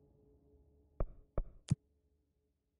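Short electronic clicks sound three times.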